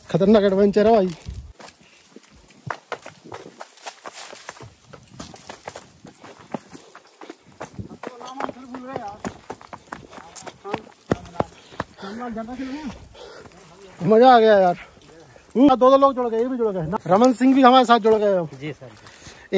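A man talks with animation close to a microphone, outdoors.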